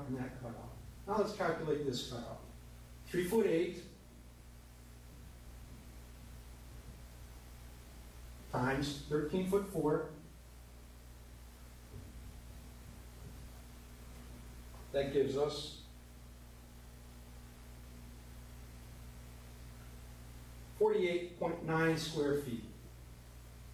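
A man speaks calmly into a nearby microphone, in short bursts with pauses.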